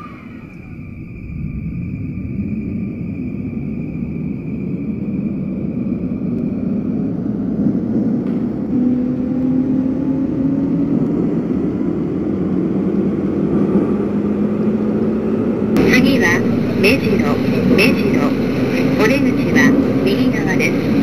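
Train wheels rumble on the rails, growing louder.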